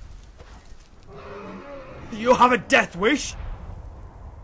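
A dragon roars loudly overhead.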